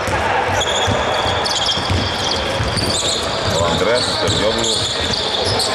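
A basketball bounces with dull thumps.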